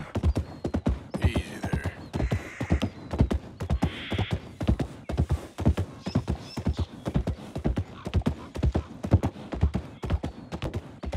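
Horse hooves clop rapidly on wooden railway ties.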